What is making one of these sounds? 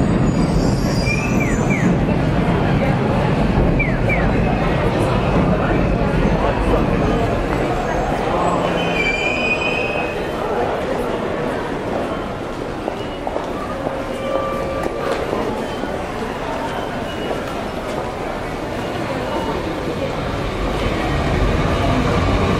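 A bustling crowd of men and women murmurs nearby.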